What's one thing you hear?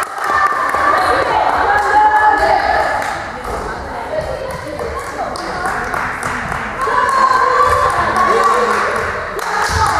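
Young women shout and cheer in an echoing hall.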